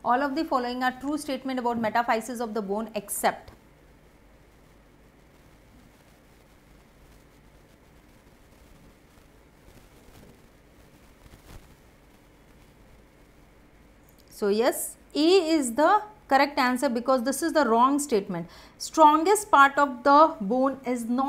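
A young woman speaks clearly and steadily into a close microphone.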